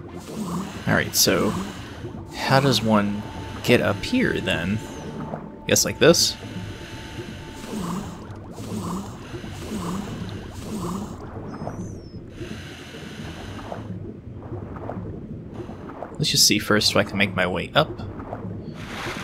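Bubbles gurgle and burble underwater.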